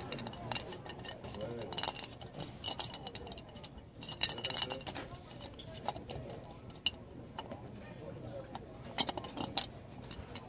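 A small plastic toy knocks and rubs in a hand.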